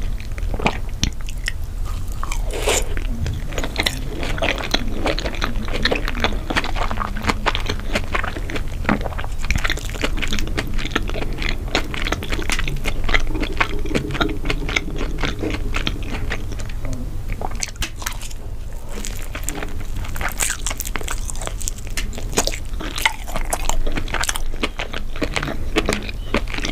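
A young woman chews soft food with wet, smacking mouth sounds close to a microphone.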